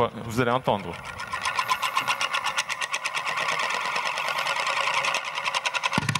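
A spinning ring rattles against a hard surface, its whirring taps growing faster and faster.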